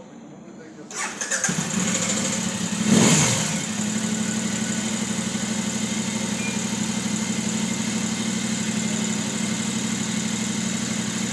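A motorcycle engine starts and idles steadily close by.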